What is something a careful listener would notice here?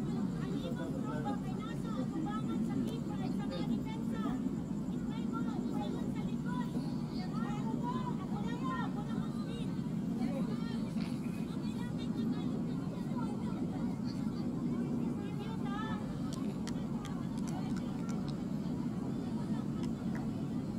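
Young women call out to each other on an outdoor field.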